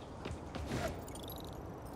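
Wind rushes past a figure swinging through the air.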